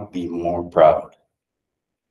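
A man speaks into a microphone in an echoing hall.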